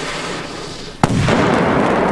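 A firework explodes with a loud bang.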